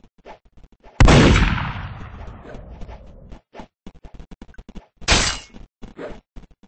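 A gunshot bangs loudly and echoes away.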